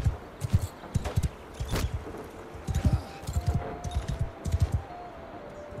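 A horse's hooves thud on a dirt path.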